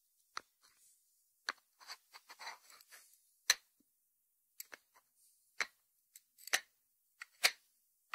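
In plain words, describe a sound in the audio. Fingertips tap on a lidded ceramic dish.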